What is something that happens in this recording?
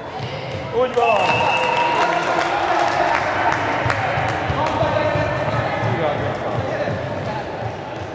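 A crowd of young girls cheers and shouts loudly.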